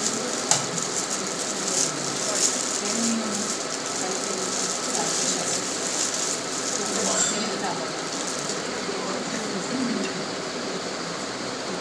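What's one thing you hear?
Eggshells crackle softly as hands peel boiled eggs.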